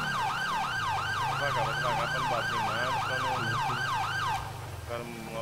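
A police siren wails rapidly up and down.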